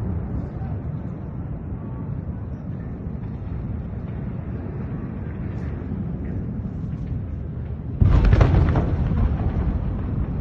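Distant explosions rumble low and steadily.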